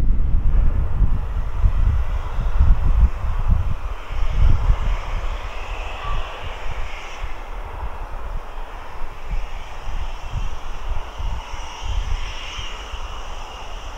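A steam locomotive chuffs in the distance.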